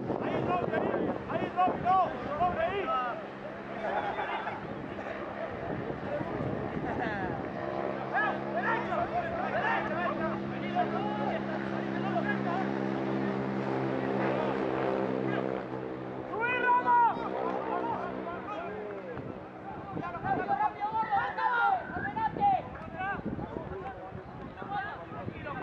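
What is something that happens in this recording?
Spectators call out and cheer nearby.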